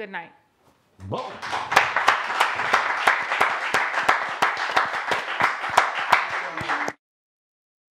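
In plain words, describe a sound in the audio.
Clapping hands rattle quickly and steadily.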